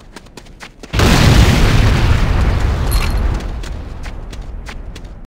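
A loud explosion booms and rumbles slowly away.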